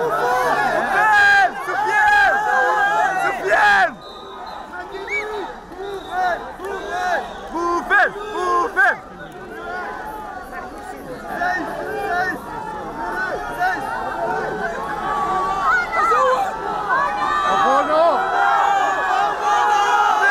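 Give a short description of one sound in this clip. A large crowd chants and cheers loudly outdoors.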